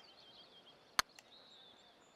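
A golf putter taps a ball.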